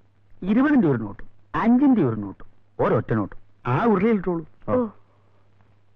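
A man shouts angrily in a loud, booming voice.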